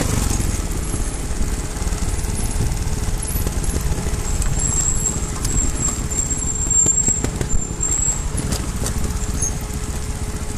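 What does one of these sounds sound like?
A dirt bike engine rumbles and sputters close by.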